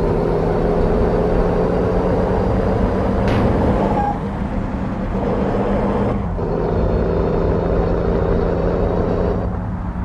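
A heavy truck engine rumbles steadily and speeds up.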